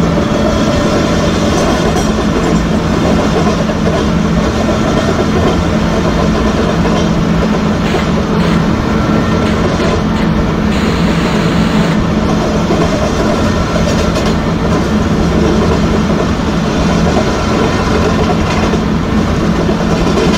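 Train wheels rumble and clack on the rails.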